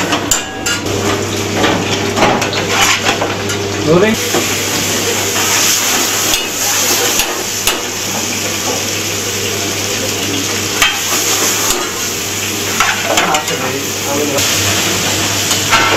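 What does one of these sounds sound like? Food sizzles and fries loudly in a hot pan.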